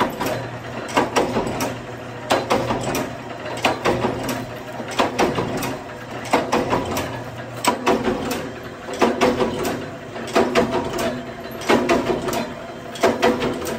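Metal parts clink as they are handled.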